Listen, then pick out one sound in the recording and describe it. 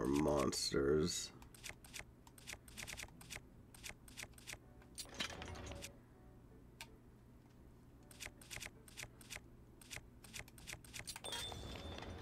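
Soft clicks tick quickly as a game menu scrolls.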